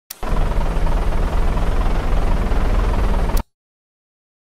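A car engine hums as a vehicle rolls slowly.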